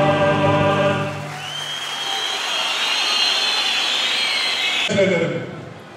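A large crowd cheers and whistles in an echoing hall.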